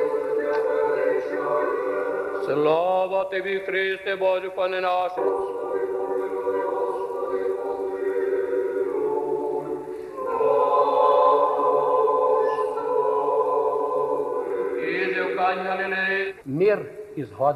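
An elderly man chants a prayer in a large echoing hall.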